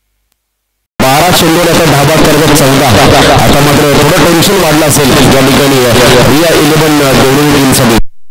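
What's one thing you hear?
A man commentates with animation through a microphone.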